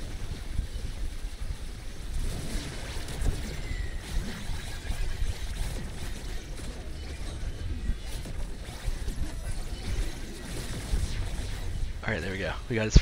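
Game spell blasts thump and crackle in quick succession.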